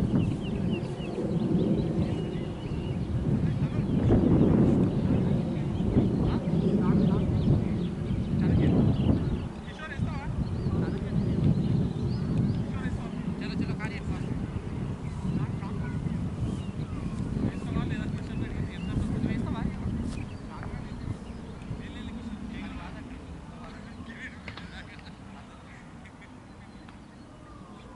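Men talk with each other outdoors at a distance.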